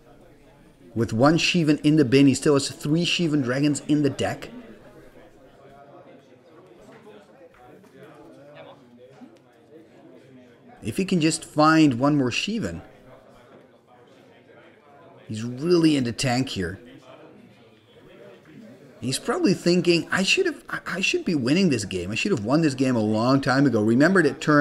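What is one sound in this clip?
A second man answers calmly, close by.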